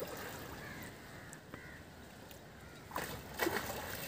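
Fishing bait splashes into water.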